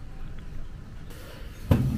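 Footsteps tap across a hard floor indoors.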